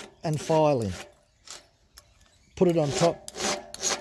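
A metal file rasps against a saw chain tooth.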